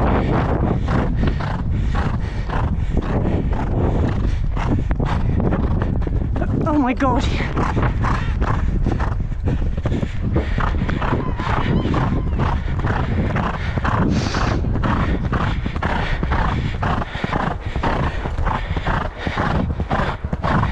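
Horse hooves pound rhythmically on soft sand at a gallop.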